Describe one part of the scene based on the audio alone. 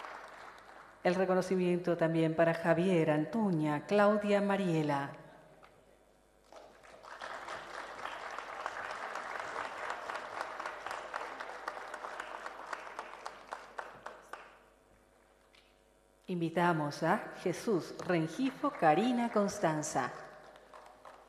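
A woman speaks through a loudspeaker, announcing with animation in an echoing hall.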